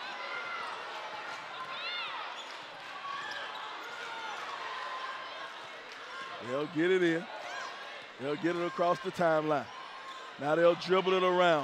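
A large crowd murmurs and cheers in an echoing gym.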